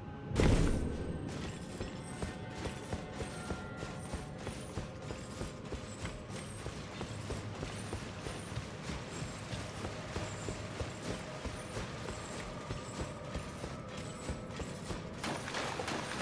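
Footsteps run quickly on stone.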